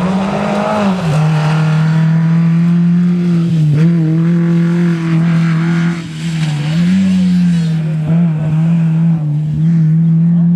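A rally car engine changes pitch with quick gear shifts as it drives away.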